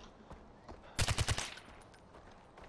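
A rifle fires a quick burst of loud shots.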